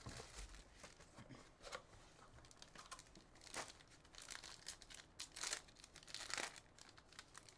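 Foil wrapping crinkles and tears as hands open a pack.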